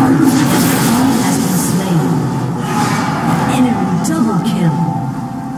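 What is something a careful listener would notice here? Game sound effects of a fight clash and whoosh.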